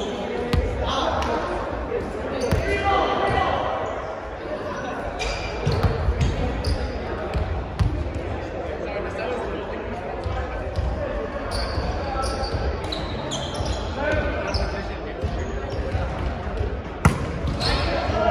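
Young men call out and chat across a large echoing gym.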